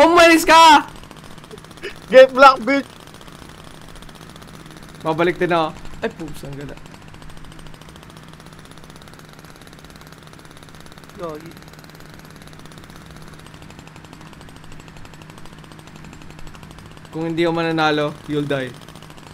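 A small kart motor hums steadily.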